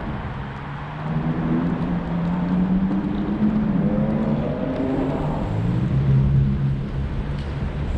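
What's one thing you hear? A motor hums and changes pitch as a vehicle speeds up.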